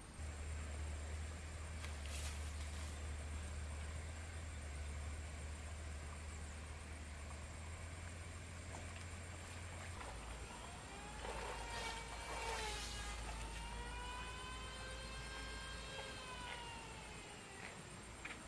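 A stream of water trickles gently.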